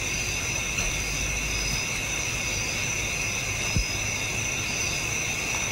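Footsteps walk slowly on a hard path.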